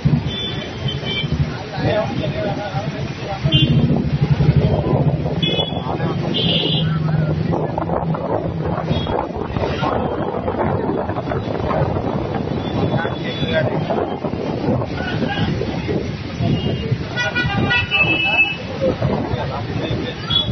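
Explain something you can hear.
Men talk outdoors.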